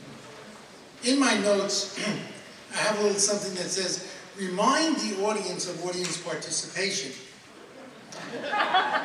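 An elderly man speaks into a microphone in a large hall, announcing with a warm, clear voice.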